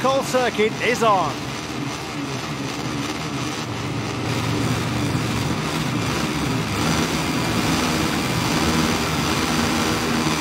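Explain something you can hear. Many motorcycle engines idle and rev together on a starting grid.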